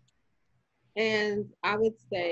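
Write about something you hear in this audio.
A woman speaks brightly over an online call.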